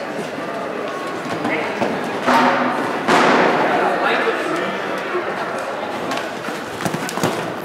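Horse hooves thud on soft sand in a large echoing hall.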